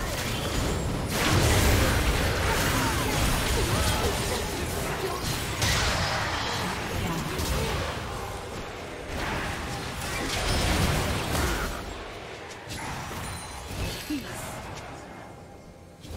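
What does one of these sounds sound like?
Magic blasts and weapon hits crash and boom in a busy video game fight.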